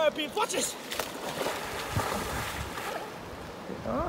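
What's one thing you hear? A man splashes into a river with a heavy splash.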